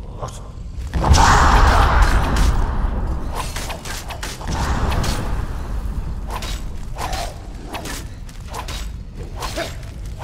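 Swords clash and strike in combat.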